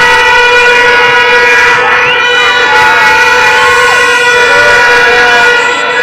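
Music plays loudly through loudspeakers outdoors.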